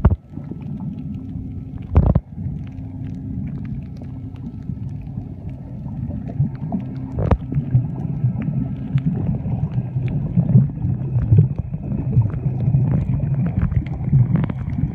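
Water rumbles and swishes, muffled underwater.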